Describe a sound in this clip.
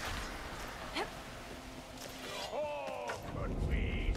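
A bowstring twangs as an arrow is loosed.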